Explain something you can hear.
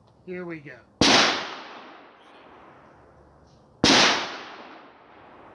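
A pistol fires two loud shots outdoors, each echoing away.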